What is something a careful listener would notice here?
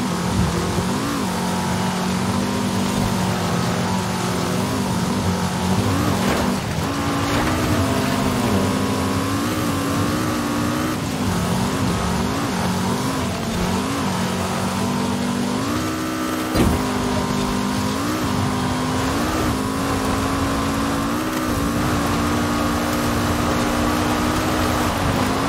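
Tyres skid and rumble over loose dirt.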